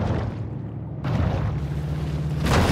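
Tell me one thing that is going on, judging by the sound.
Waves splash at the water's surface.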